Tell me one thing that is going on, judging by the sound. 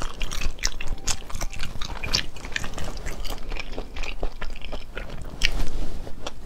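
A young woman chews and slurps food wetly, close to a microphone.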